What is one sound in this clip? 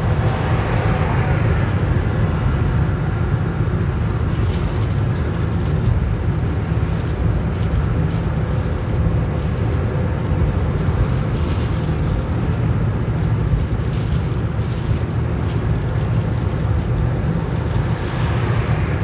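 Tyres roar on a motorway surface.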